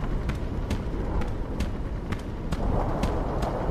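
Footsteps crunch on gravelly ground.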